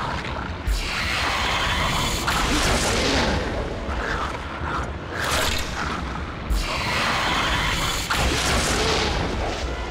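Arrows whoosh and strike with a sharp impact.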